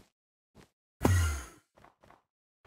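A game block is placed with a short thud.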